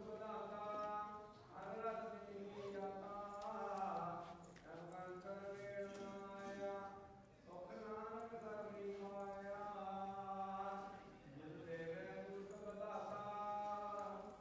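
A middle-aged man sings a slow, drawn-out chant close by, with short pauses between phrases.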